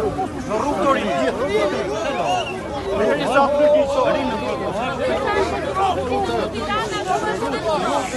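A crowd of men and women shout and argue over each other up close.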